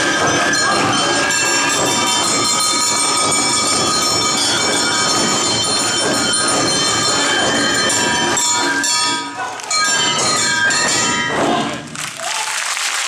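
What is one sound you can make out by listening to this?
Festival music plays loudly.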